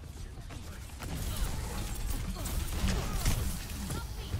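Weapons fire and blasts crackle in a busy game battle.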